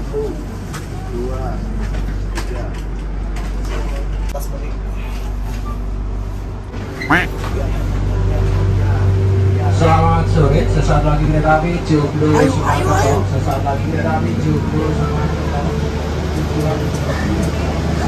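A train's engine and air system hum low and steady.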